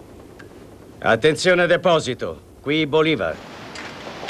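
An elderly man speaks briefly into a microphone in a calm voice.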